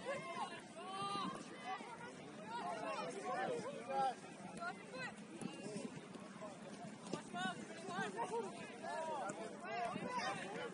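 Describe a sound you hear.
Young players shout and call out to each other across an open field outdoors.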